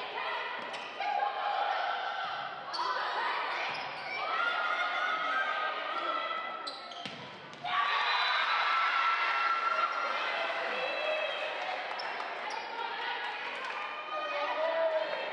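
A crowd of spectators shouts and chatters in a large echoing gym.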